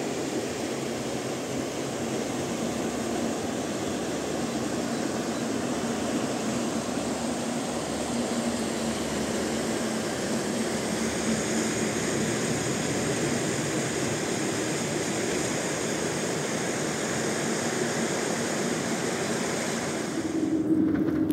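A shallow mountain stream rushes over rocks.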